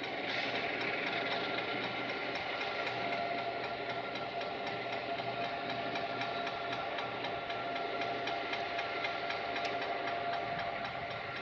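A diesel locomotive approaches with its engine rumbling steadily.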